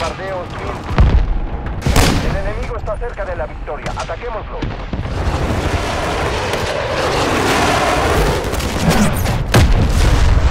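A rifle fires loud, sharp shots that echo.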